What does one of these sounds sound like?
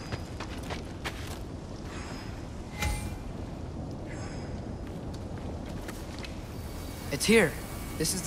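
Molten lava crackles and hisses steadily.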